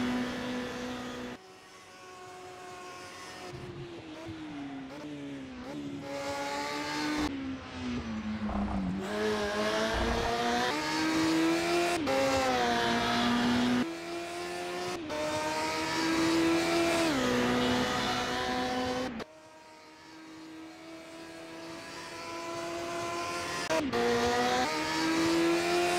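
A racing car engine revs high and changes pitch as the car shifts gears through corners.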